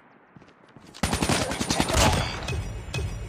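An automatic rifle fires a rapid burst.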